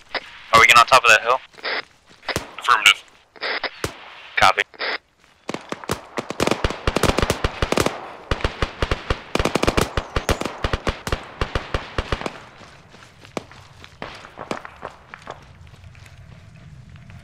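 Footsteps crunch quickly over dry, stony ground.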